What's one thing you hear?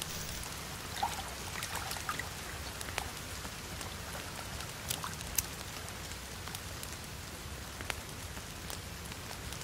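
Water ripples and laps gently nearby.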